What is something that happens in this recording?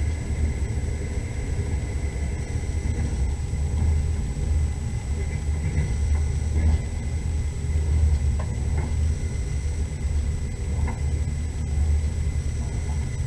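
Tyres rumble on a snowy road.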